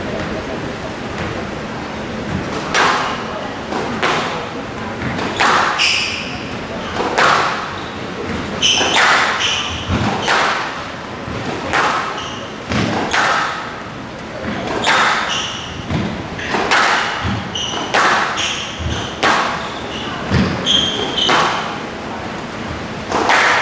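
Rackets strike a squash ball in a fast rally.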